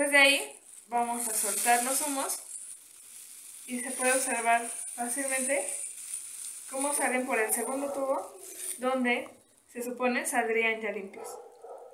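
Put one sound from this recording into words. Plastic wrap crinkles in a girl's hands.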